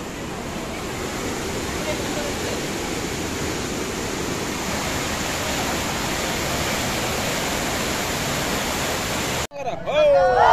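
Water rushes and roars steadily through a dam gate.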